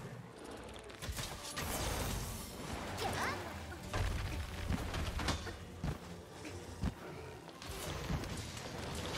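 Fiery explosions burst and crackle.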